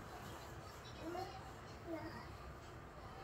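A baby coos and babbles nearby.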